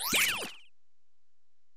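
A short electronic chime sweeps up and down.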